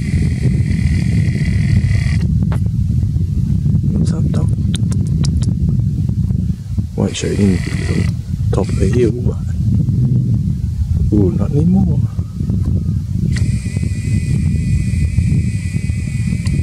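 Wind blows hard and gusts across the microphone outdoors.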